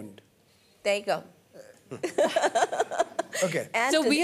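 A woman laughs heartily into a microphone.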